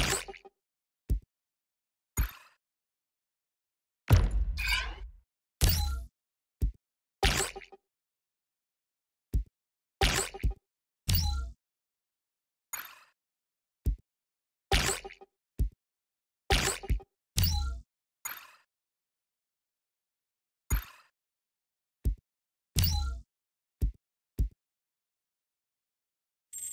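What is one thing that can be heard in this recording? Short electronic interface blips and whooshes sound with each menu selection.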